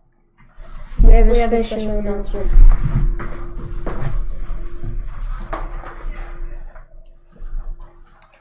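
A chair scrapes and bumps.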